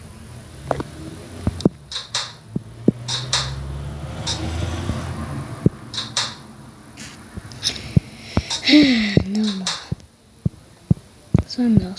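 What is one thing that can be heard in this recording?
Small locker doors click open and shut.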